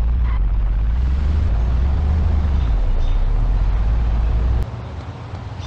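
A monster truck engine rumbles deeply.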